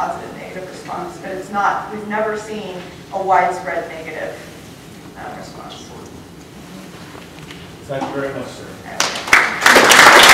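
A woman speaks to an audience.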